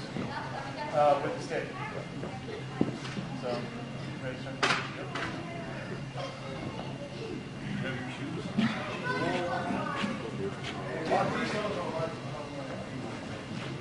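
A man talks calmly in a large echoing hall.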